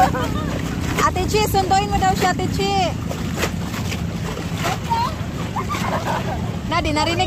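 Young people shout and laugh playfully while swimming nearby.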